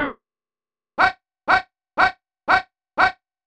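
A video game plays a short burst of electronic chirps, repeated five times at an even pace.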